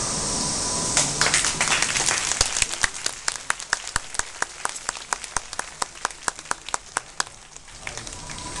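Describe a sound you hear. People in a crowd clap their hands in a quick, steady rhythm.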